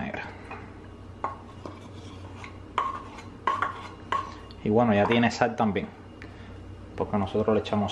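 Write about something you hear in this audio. A wooden pestle knocks and grinds in a wooden mortar.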